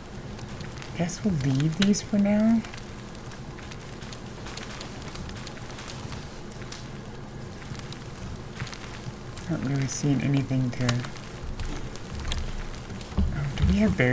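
A young woman talks casually into a microphone, close by.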